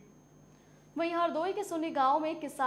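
A young woman speaks clearly into a microphone, reading out news.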